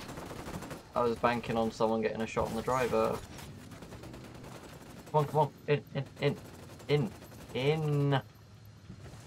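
A young man talks with animation, close to a headset microphone.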